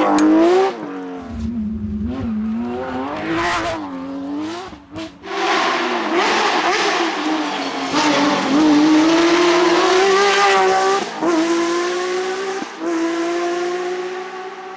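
A rally car engine roars and revs hard, rising and falling in pitch as the gears change.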